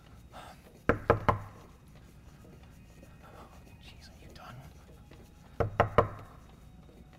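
A man knocks three times on a wooden door.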